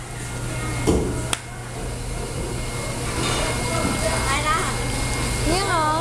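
Tap water runs and splashes into a basin.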